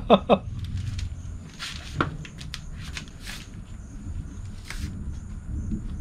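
Sandals scuff and rustle on cardboard.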